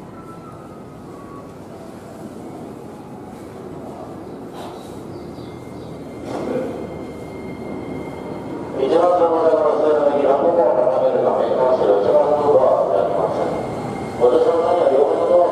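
A train rolls into a station, its rumble growing louder as it approaches.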